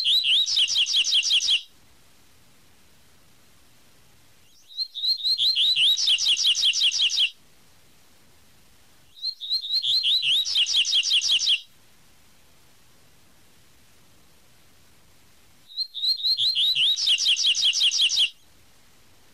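A small songbird sings short bursts of quick, high, whistled chirps, with pauses between them.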